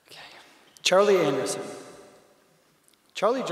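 A man reads out through a microphone.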